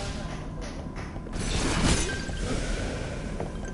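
Punches and hits land with sharp thuds.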